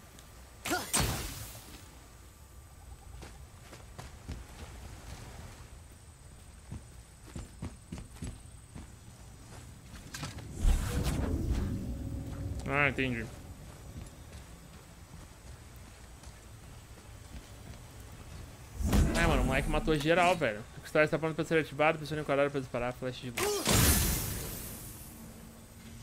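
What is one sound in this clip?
A magic blast crackles and whooshes.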